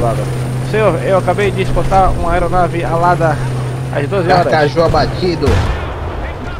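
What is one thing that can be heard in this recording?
A tank engine rumbles and clanks close by.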